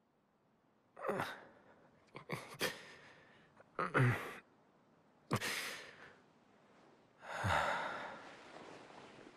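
A young man groans and murmurs sleepily.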